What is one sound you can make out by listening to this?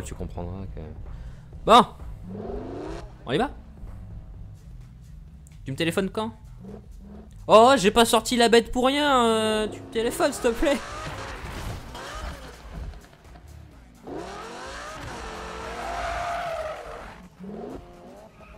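A sports car engine revs hard and roars, rising and falling in pitch.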